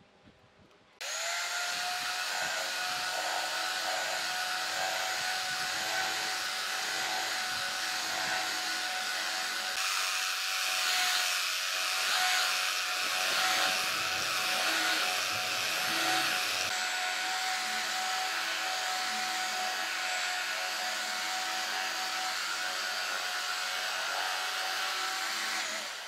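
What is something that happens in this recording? A belt sander whirs loudly and steadily.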